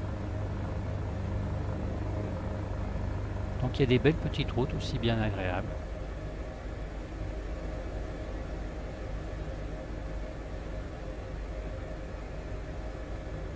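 A helicopter's engine and rotor drone steadily from inside the cabin.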